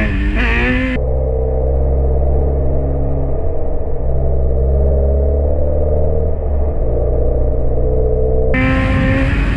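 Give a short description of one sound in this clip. Wind rushes and buffets loudly past the rider.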